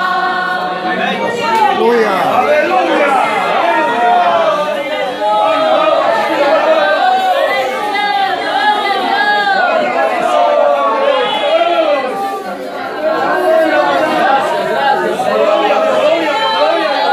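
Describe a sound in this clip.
Many men and women pray aloud at once, with emotion.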